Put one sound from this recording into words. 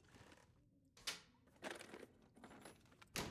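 A cabinet is rummaged through with soft knocks and rustles.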